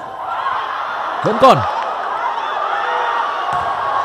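A volleyball is struck hard with a sharp smack.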